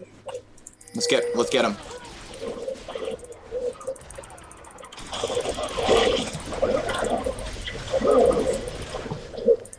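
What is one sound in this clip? Fantasy game spell effects whoosh and blast.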